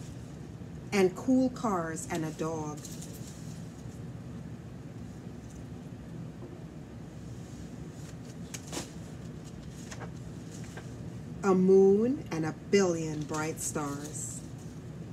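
A woman reads aloud expressively close by.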